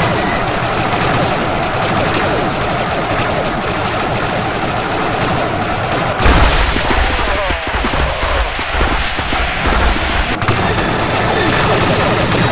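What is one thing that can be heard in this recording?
Laser blasters fire rapidly in a dense barrage.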